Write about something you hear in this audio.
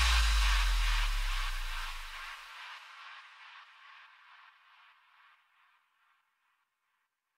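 Electronic dance music plays loudly, then fades away to silence.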